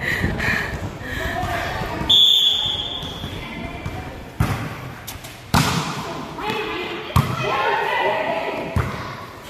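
Young girls call out and chatter nearby.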